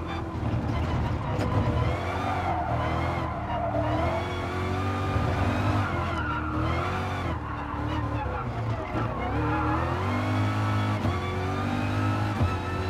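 A racing car engine revs hard, rising and falling in pitch as the gears change.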